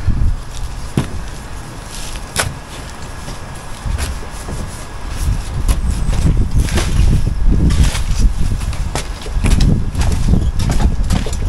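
Bricks clink and knock as a man handles them.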